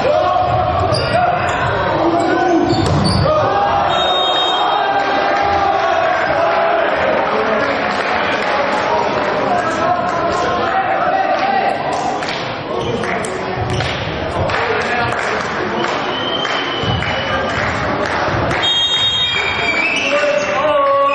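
Young men shout and call to each other in an echoing hall.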